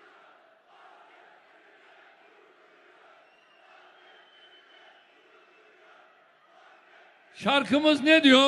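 A large crowd cheers and chants in a big hall.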